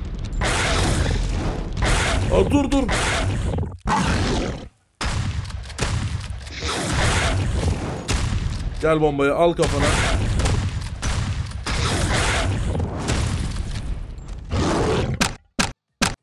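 Gunfire rattles in bursts with loud blasts.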